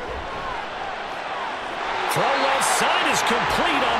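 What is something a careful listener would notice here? A stadium crowd cheers and roars louder.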